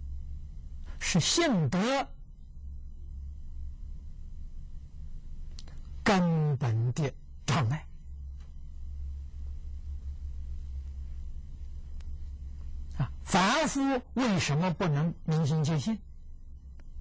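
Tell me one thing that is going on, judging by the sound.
An elderly man speaks calmly into a close microphone, in short phrases with long pauses.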